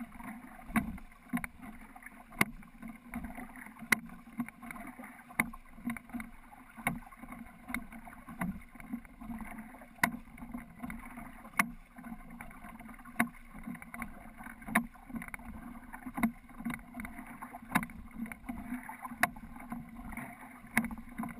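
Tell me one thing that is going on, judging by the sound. Water ripples along the side of a small boat.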